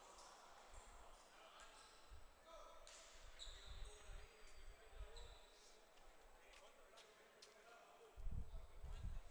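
Players shout and call out in a large echoing gym.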